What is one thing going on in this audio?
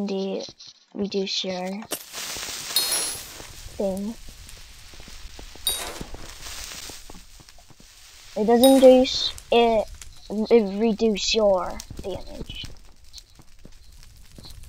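Stone blocks crack and break in quick succession.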